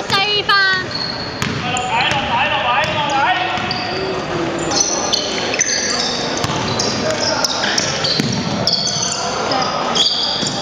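A basketball bounces on the wooden floor, echoing in a large hall.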